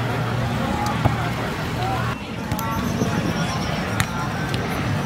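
A ball is struck with sharp thuds.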